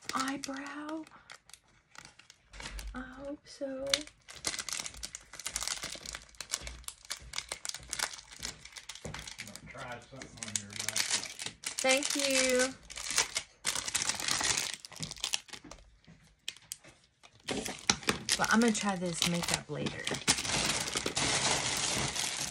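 A plastic bag crinkles and rustles in hands.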